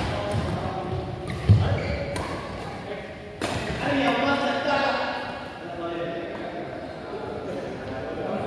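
Sneakers squeak and thud on a hard court.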